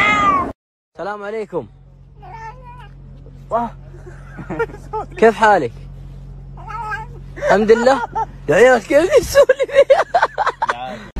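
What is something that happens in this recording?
A cat meows again and again, more and more insistently.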